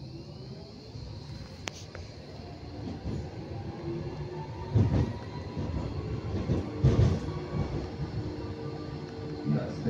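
A tram rumbles and hums steadily along its rails.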